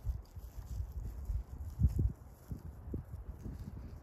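A dog's paws patter over dry grass.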